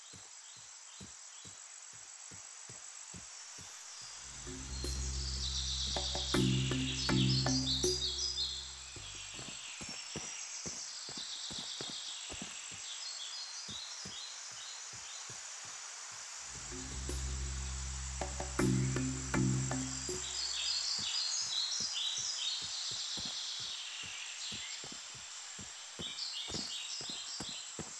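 Footsteps tread steadily over grass and earth.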